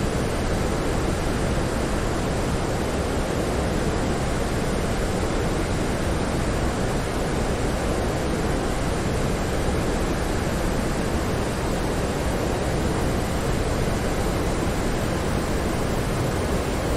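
Jet engines hum with a steady, muffled roar.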